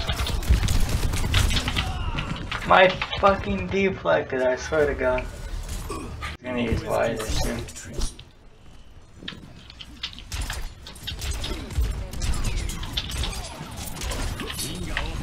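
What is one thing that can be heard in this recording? Rapid gunshots and blasts crackle in a video game battle.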